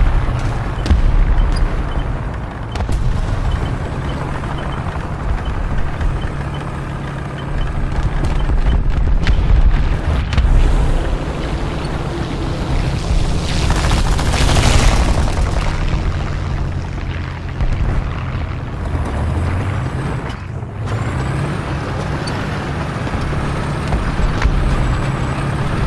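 A tank engine rumbles and clanks steadily at close range.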